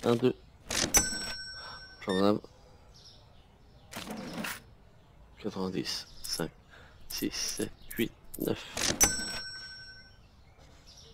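A cash register beeps.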